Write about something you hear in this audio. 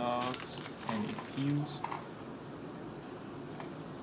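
A plastic bag rustles and crinkles in hands.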